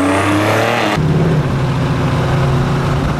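A car engine rumbles deeply and steadily as the car drives by.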